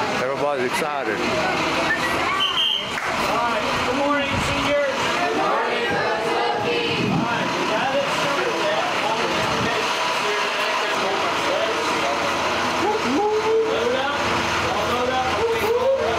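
A crowd of teenagers and adults chatters loudly all around, close by and outdoors.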